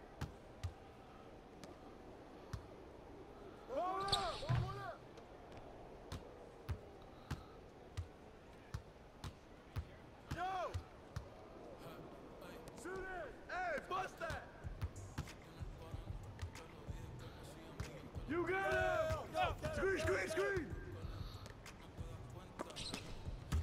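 A basketball bounces on a hardwood court in quick, steady dribbles.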